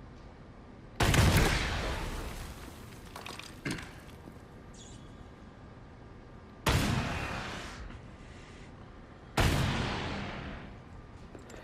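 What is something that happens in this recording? A rocket explodes with a deep boom that rumbles away.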